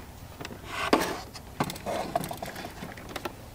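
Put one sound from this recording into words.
A metal mug is set down with a clunk on a coffee machine's base.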